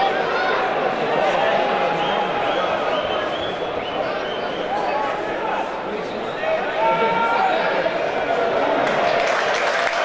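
A large crowd sings and chants in a stadium.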